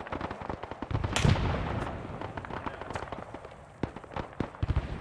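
Artillery shells explode with heavy booms.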